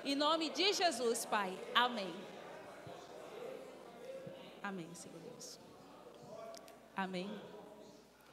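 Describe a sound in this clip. A young woman speaks with feeling into a microphone, heard through loudspeakers.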